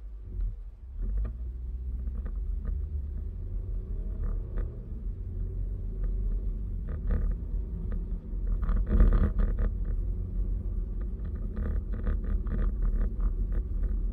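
A car drives off and its engine hums and rumbles louder along the road.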